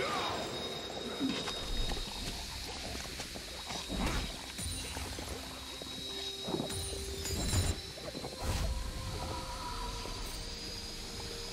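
Magic spells and weapon hits crackle and thud in a busy fight.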